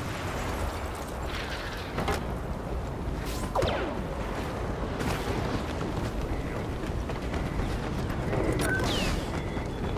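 Footsteps thud quickly on sand and metal steps.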